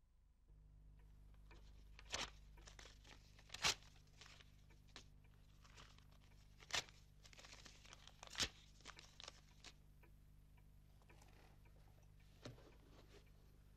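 Papers rustle and crinkle as they are handled.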